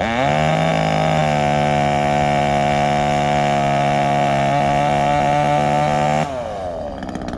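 A chainsaw runs at a distance, up in a tree.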